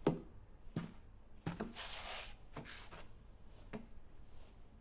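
Dishes and utensils clatter and knock on a counter.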